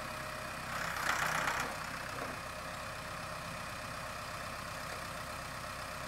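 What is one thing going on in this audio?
A tractor engine idles and rumbles steadily nearby.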